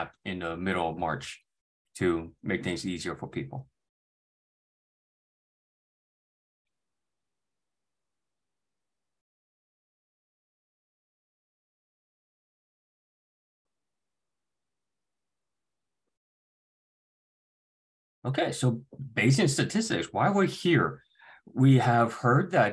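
A young man speaks calmly into a microphone, heard as over an online call.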